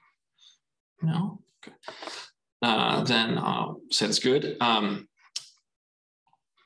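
A young man speaks calmly through an online call, with pauses.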